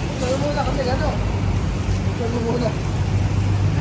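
A young man speaks nearby.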